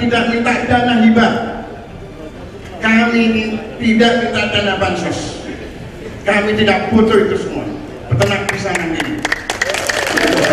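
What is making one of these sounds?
A man speaks with animation through a microphone over loudspeakers.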